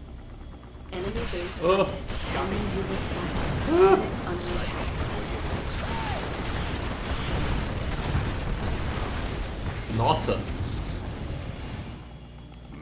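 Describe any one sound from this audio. Explosions and gunfire boom in a loud battle.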